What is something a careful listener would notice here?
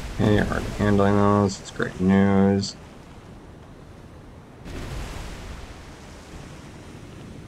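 Waves wash steadily against a ship's hull.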